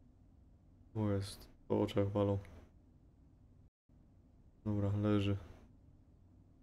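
A young man speaks loudly and with animation, close to a microphone.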